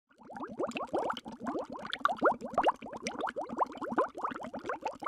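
Bubbles rise and gurgle underwater, close by.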